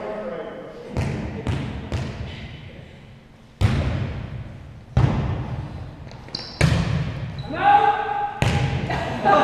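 A volleyball is struck with sharp slaps that echo around a large hall.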